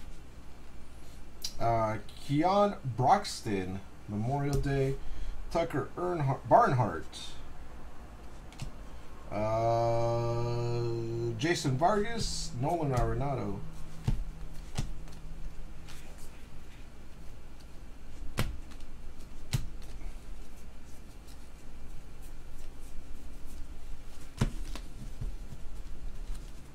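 Trading cards shuffle and flick between hands.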